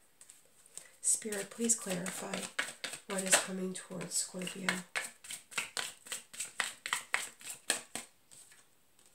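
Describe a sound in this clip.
Playing cards are shuffled by hand with quick flicking clicks.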